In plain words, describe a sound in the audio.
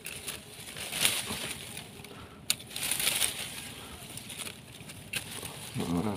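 A hand rustles through dry leaves and grass.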